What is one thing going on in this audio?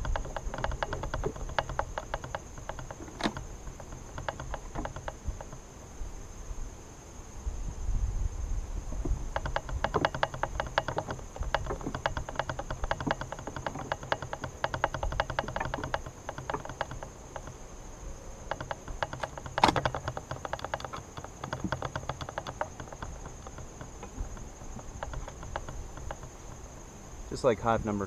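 Wooden hive frames knock and scrape against a box.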